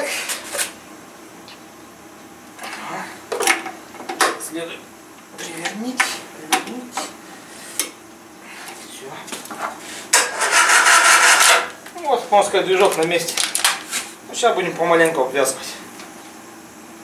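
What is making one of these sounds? Metal tools clink and knock against an engine.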